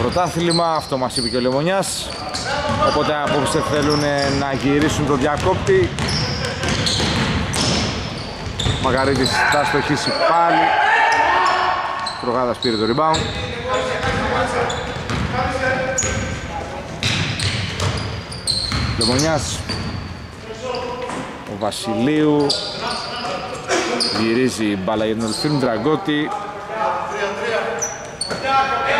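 A basketball bounces on a hardwood floor in a large echoing hall.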